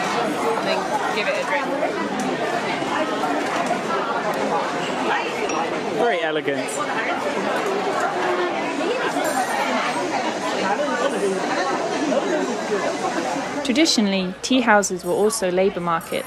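Many people chatter all around in a busy crowd.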